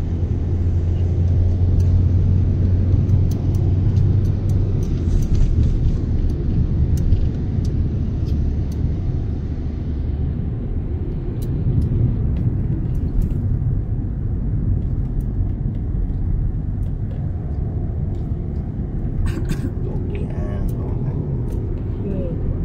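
Raindrops tap lightly on a car windscreen.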